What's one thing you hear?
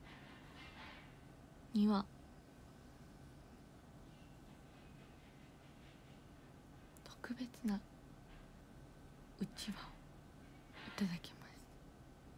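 A young woman speaks softly in short bursts, close by.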